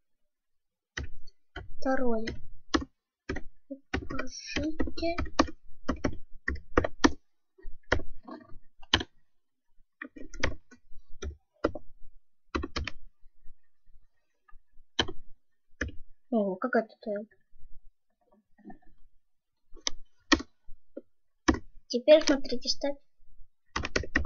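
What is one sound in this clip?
Keys clack on a keyboard in short bursts.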